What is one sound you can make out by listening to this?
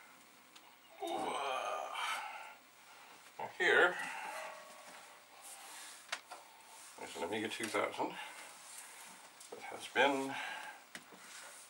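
A metal computer case rattles and clanks as it is handled.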